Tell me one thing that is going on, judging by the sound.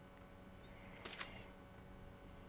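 Paper rustles as a sheet is picked up.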